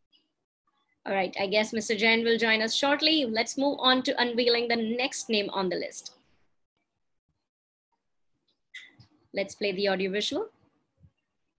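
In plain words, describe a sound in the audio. A young woman speaks calmly over an online call.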